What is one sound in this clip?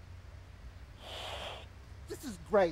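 A young man blows a puff of breath into his cupped hands.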